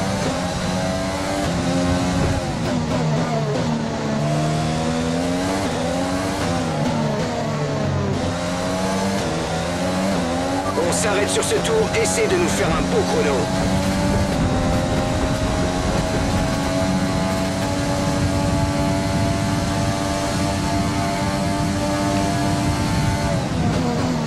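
A racing car engine roars and whines, rising and falling in pitch as gears shift.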